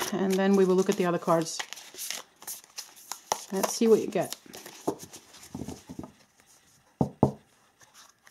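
Playing cards riffle and slide as they are shuffled by hand.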